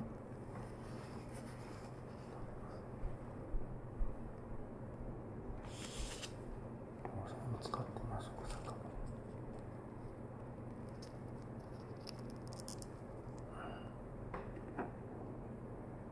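Plastic wrapping crinkles as it is handled close by.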